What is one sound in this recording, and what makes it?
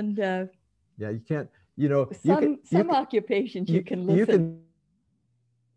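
A young woman speaks calmly into a nearby microphone.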